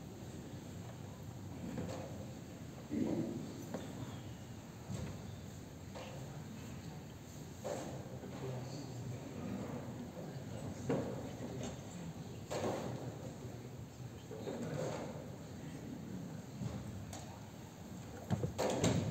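Many men murmur and talk quietly in a large echoing hall.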